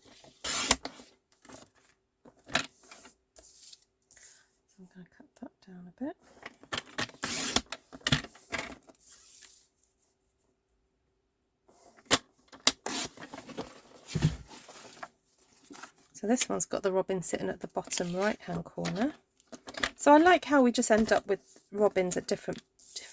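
Card stock rustles and slides across a hard board.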